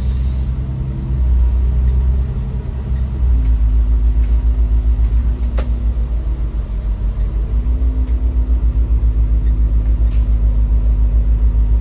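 Windscreen wipers sweep across the glass.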